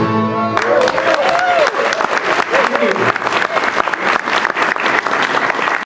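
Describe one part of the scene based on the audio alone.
A fiddle plays a lively melody on stage.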